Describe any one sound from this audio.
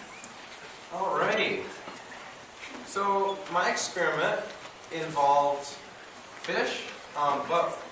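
A second young man speaks steadily into a microphone.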